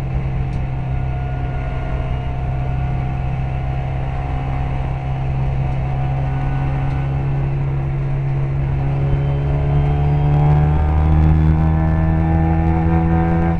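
A racing car engine roars loudly from close by, climbing in pitch as the car speeds up toward the end.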